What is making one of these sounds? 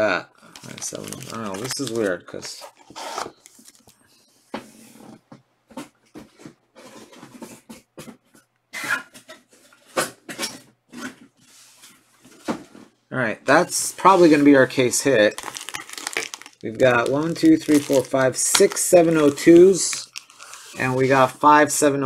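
Foil packets crinkle and rustle as they are handled.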